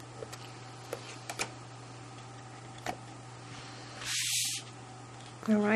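A sheet of card rustles as it is lifted and laid down.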